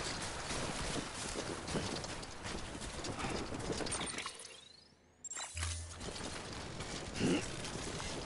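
Footsteps crunch on grassy ground at a steady walking pace.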